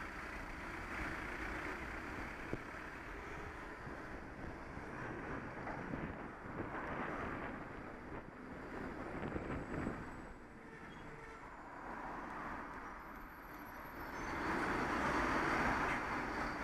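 Traffic engines rumble nearby.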